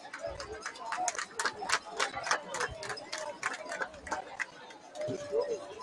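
A crowd of young men shouts and cheers outdoors at a distance.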